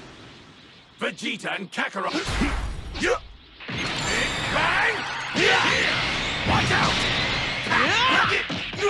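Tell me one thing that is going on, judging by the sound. Energy blasts and impacts boom in quick bursts.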